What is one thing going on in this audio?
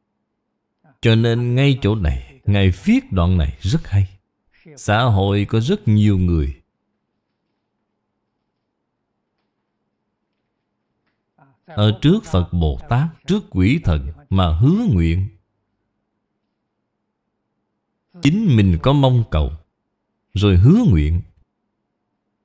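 An elderly man speaks calmly and steadily into a close microphone, with long pauses between phrases.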